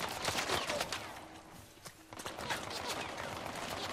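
Leaves and plants swish as someone brushes past them.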